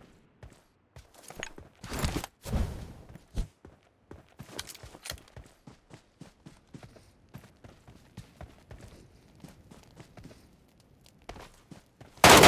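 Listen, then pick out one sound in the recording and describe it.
Footsteps run quickly over gravel and grass.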